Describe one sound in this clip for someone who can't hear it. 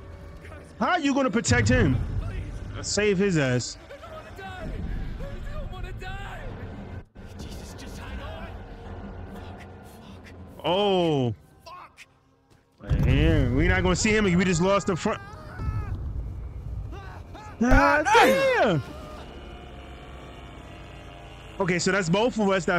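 A young man speaks excitedly and exclaims close to a microphone.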